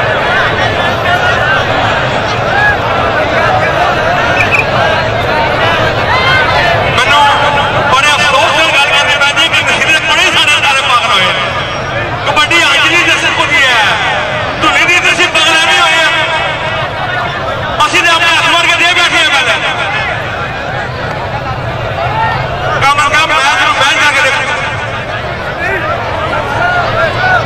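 A large outdoor crowd chatters and murmurs throughout.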